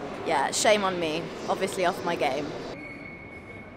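A young woman talks animatedly close to the microphone.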